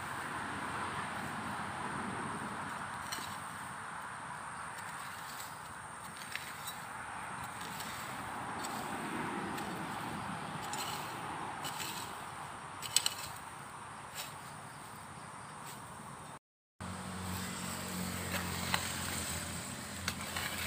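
A hoe scrapes and chops into grassy soil.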